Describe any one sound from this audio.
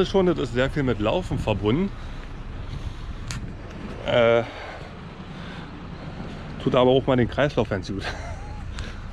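A man talks casually, close to the microphone.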